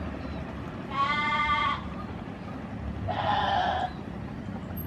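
A train horn sounds twice in the distance.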